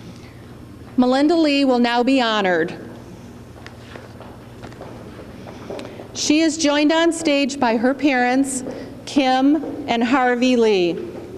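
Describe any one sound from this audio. A middle-aged woman speaks calmly into a microphone in an echoing hall.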